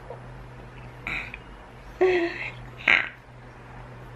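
A baby coos and squeals happily.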